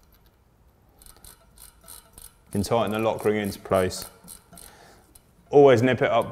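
Small metal parts click and rattle softly.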